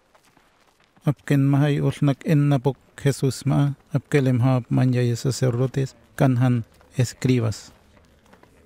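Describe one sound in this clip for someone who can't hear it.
A man speaks firmly.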